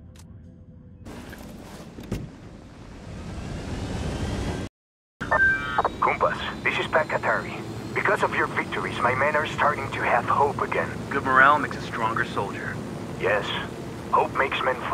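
A helicopter's rotor thumps and its engine whines steadily.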